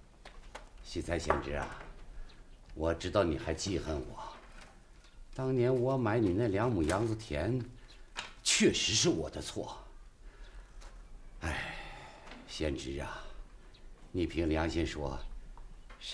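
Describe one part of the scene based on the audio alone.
A middle-aged man speaks calmly and earnestly nearby.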